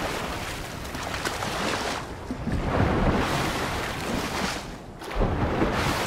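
Water splashes as a swimmer strokes quickly through it.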